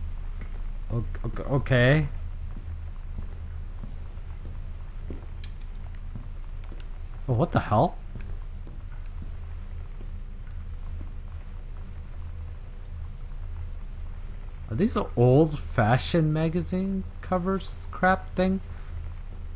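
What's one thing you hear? A young man talks into a close microphone in short bursts.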